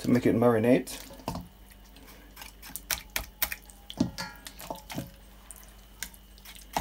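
Raw meat squelches and slaps wetly.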